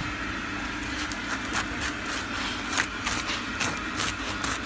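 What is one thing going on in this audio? Melting butter sizzles and crackles softly on hot bread.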